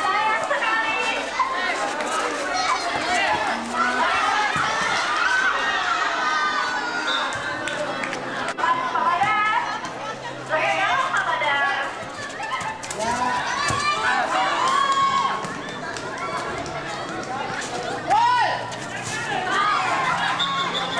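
A crowd of young spectators shouts and cheers loudly outdoors.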